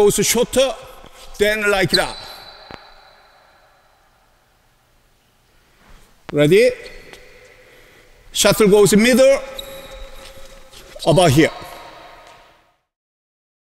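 A man speaks with animation in an echoing hall.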